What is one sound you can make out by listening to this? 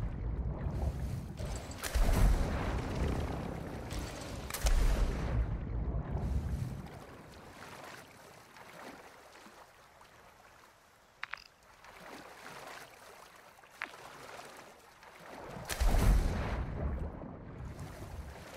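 Wind rushes loudly past in bursts.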